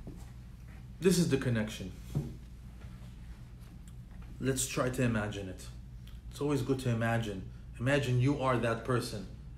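A man speaks calmly and closely in short bursts.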